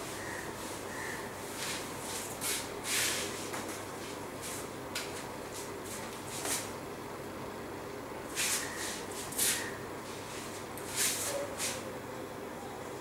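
A marker squeaks and scrapes across a whiteboard in short strokes.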